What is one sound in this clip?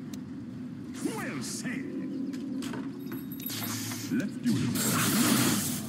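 Video game spell effects zap and crackle during a fight.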